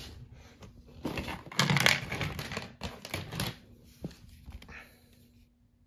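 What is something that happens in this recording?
Plastic toy track pieces clatter and knock together as they are handled.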